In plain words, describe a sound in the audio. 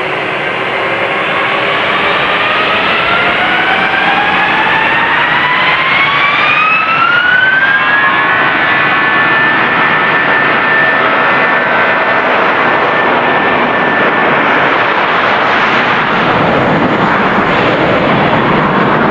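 Jet engines spool up with a rising whine, then hold a loud, steady roar.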